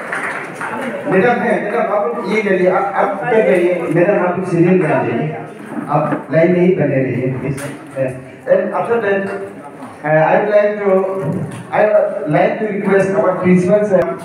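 A woman speaks loudly to the room, heard nearby.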